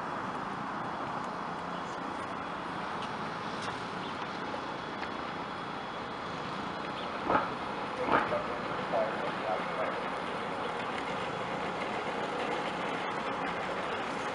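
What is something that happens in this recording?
A bus engine rumbles as the bus approaches.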